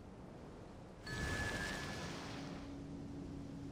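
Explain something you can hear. A shimmering magical whoosh sounds and fades away.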